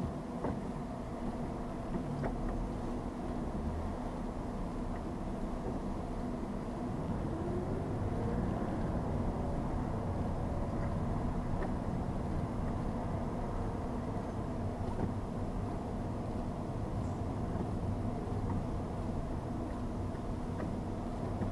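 Traffic passes on a busy road.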